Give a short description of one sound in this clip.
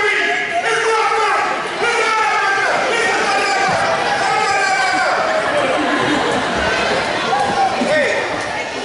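A man talks loudly and with animation in a large echoing hall.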